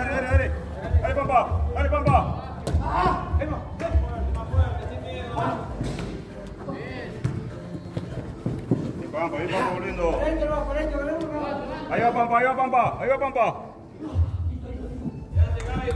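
Men shout and call out to each other, echoing in a large indoor hall.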